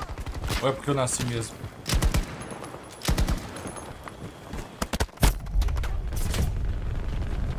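Gunshots fire in rapid bursts with loud blasts.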